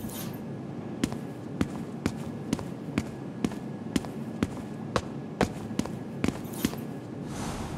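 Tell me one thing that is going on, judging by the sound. Footsteps tap on a wooden floor at a steady walking pace.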